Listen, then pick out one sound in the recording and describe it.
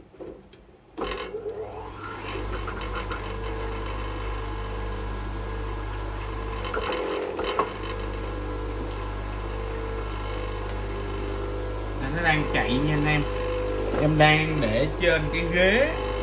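An electric grinder motor starts up and hums steadily.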